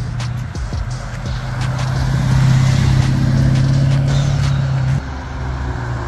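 A car engine rumbles loudly as a car drives past.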